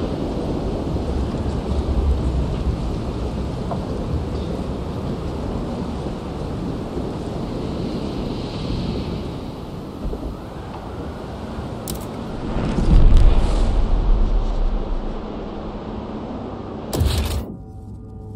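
Wind howls steadily in a snowstorm.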